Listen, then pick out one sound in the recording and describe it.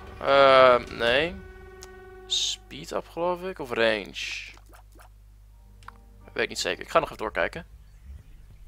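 Video game sound effects chime and squelch in quick bursts.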